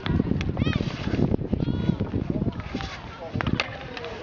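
A hockey stick strikes a ball with a sharp crack.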